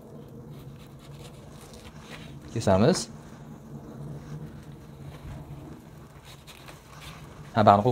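A knife slices through soft wrapped bread on a cutting board.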